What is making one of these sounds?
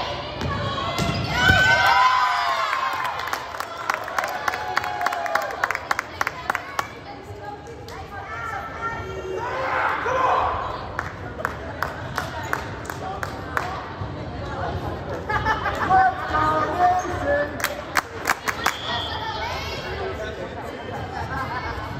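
Young women cheer and shout in a large echoing gym.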